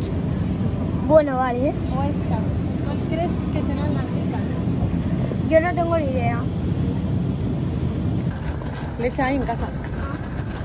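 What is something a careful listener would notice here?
A young girl talks close by in short bursts.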